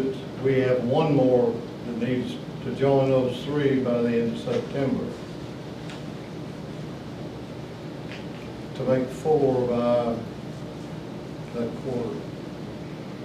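A man speaks calmly nearby, in short bursts with pauses.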